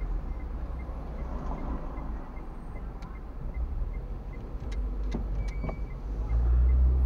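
A car engine hums low and steady from inside the car, swelling louder near the end.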